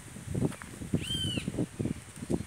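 A burrowing owl gives a short, high chirping call nearby.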